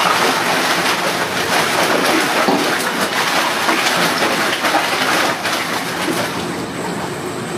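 Wet rubbish tumbles off a moving conveyor and drops down a chute.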